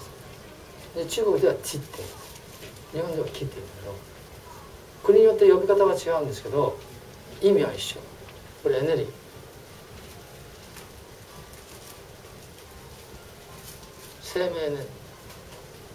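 An elderly man speaks calmly in short bursts, with pauses.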